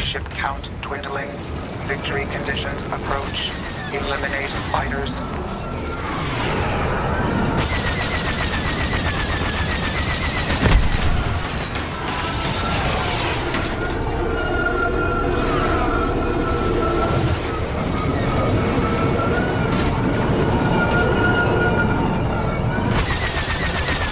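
Spaceship engines roar and whine steadily.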